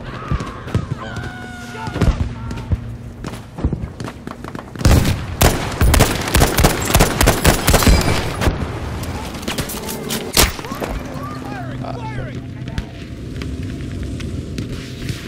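Gunshots crack from many directions.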